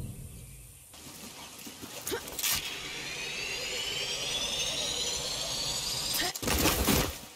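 A pulley whirs along a zipline cable with a steadily rising whine.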